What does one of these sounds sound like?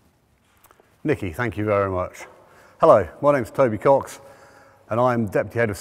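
A middle-aged man speaks clearly and with animation into a close microphone.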